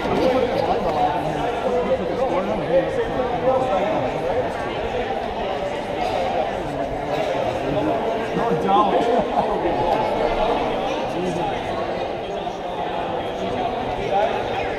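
Young players talk and call out to each other in a huddle.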